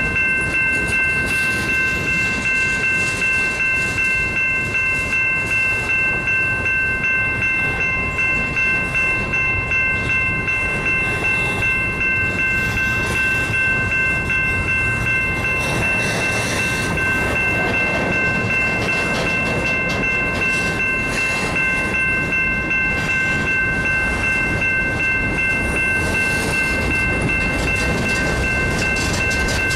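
Freight train cars rumble past close by.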